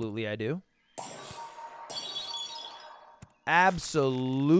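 A video game plays a bright sparkling chime.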